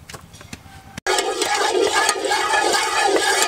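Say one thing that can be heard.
A ladle scrapes inside a metal pot.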